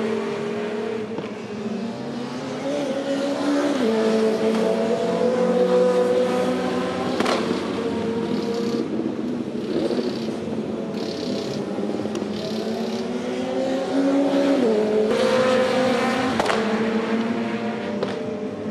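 Tyres hiss through spray on a wet track.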